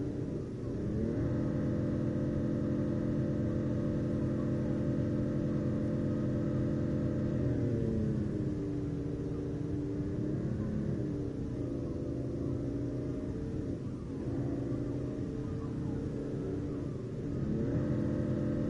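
A car engine hums steadily, rising and falling in pitch as the car speeds up and slows down.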